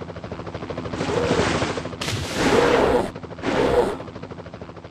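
Water splashes loudly as a shark breaks the surface.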